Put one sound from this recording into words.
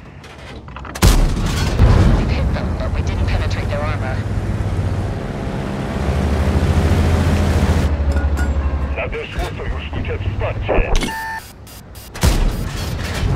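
A tank cannon fires with a loud, sharp boom.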